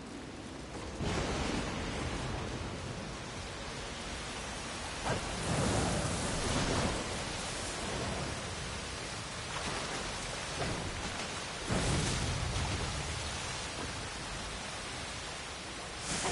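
Water rushes and roars steadily.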